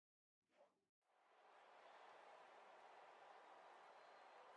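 A large stadium crowd cheers in a steady roar.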